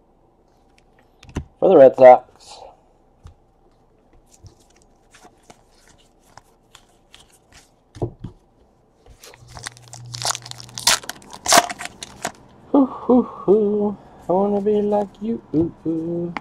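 Stiff trading cards slide and flick against each other as they are flipped through by hand.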